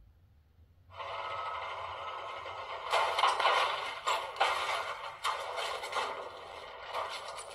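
Loud game intro music with rumbling effects plays from a small speaker.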